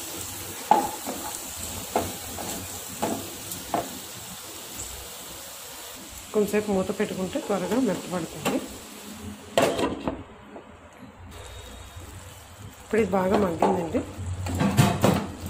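A spatula scrapes and knocks against a frying pan.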